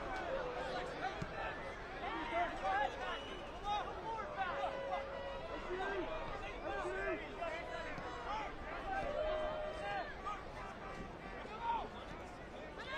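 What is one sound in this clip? A crowd murmurs and calls out across an open-air stadium.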